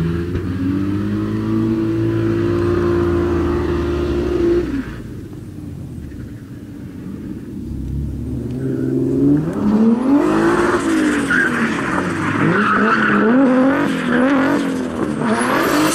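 A car engine revs hard and roars, rising and falling.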